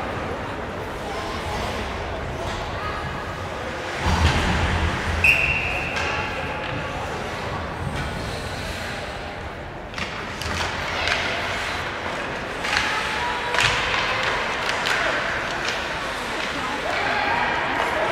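Skates scrape across ice in a large echoing arena.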